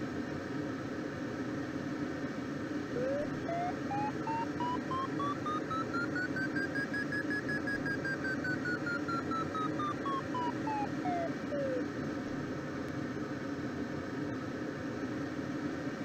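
Air rushes steadily past a glider's cockpit.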